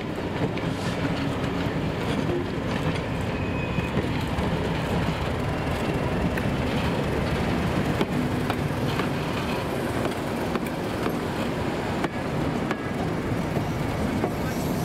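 A diesel locomotive engine rumbles loudly as it approaches slowly.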